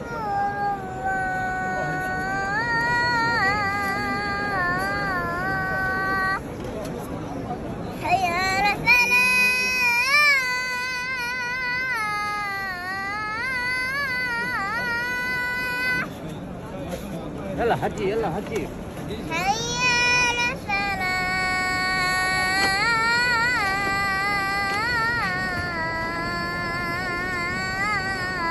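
A young boy chants loudly in a high voice, close by.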